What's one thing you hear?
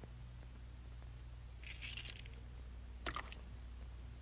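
An eggshell cracks between fingers.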